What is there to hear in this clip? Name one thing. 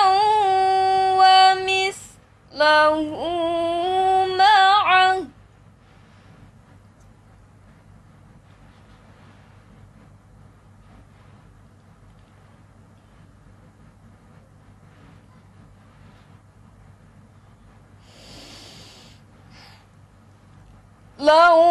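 A young girl chants a recitation in a long, melodic singing voice, close to a microphone, with pauses between phrases.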